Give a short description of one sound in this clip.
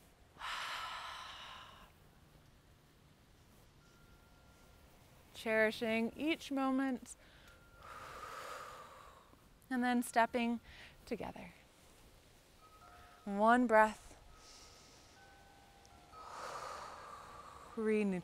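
A woman breathes in and out deeply.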